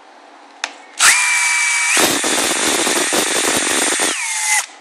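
A cordless drill whirs at high speed.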